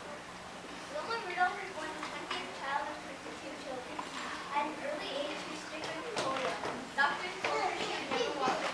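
A young boy reads out loud into a microphone in an echoing hall.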